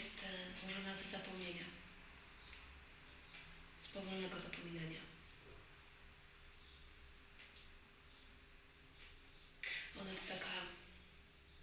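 A young woman speaks calmly and softly close by, with pauses.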